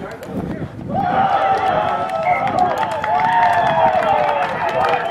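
A crowd of spectators cheers and yells with excitement.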